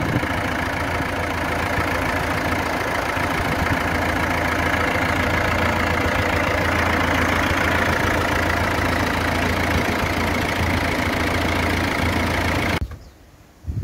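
A tractor engine idles with a steady rumble.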